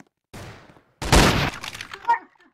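A rifle shot bangs loudly.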